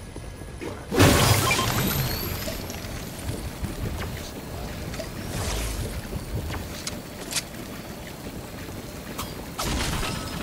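A magical storm crackles and whooshes in a video game.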